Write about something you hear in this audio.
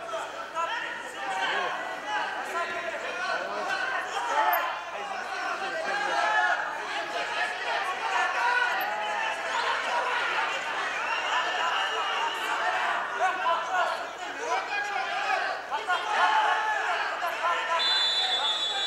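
A large crowd shouts and cheers in an echoing hall.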